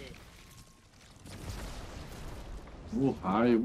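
An explosion bursts with a loud crackling roar.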